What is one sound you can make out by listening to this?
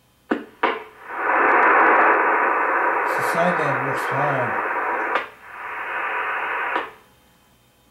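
An electronic device gives out a loud, harsh hiss that cuts off abruptly.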